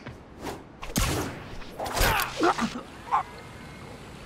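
Air whooshes past as a figure swings quickly through the air.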